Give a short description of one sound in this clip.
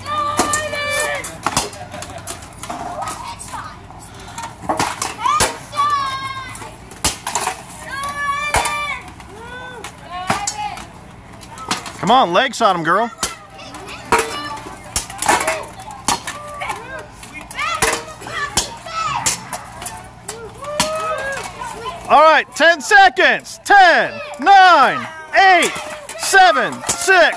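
Children shout and cheer excitedly nearby.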